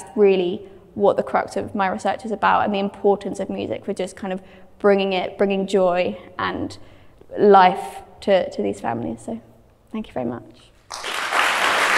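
A young woman speaks with animation to an audience in a large hall.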